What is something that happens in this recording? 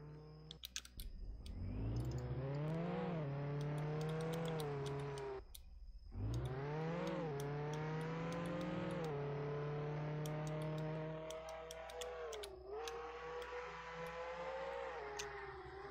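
A video game car engine revs up through the gears.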